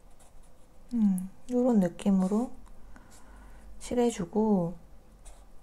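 A felt-tip marker squeaks softly across paper.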